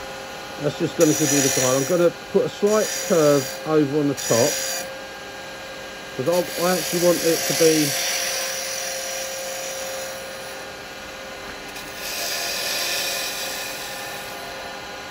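A chisel scrapes against spinning wood in short hissing bursts.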